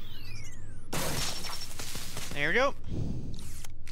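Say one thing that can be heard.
Electricity crackles and sparks in a short burst.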